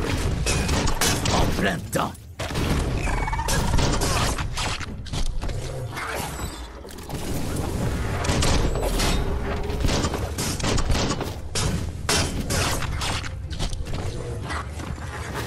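Blades clash and strike in fast, sharp hits.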